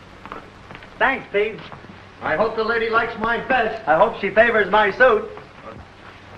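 A man sings cheerfully nearby.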